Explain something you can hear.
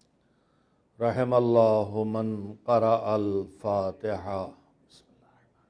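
An elderly man speaks slowly and with feeling into a microphone.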